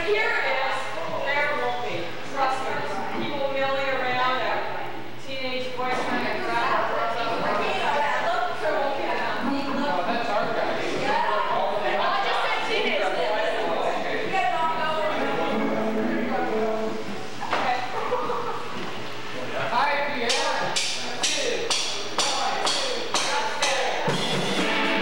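Children sing into microphones.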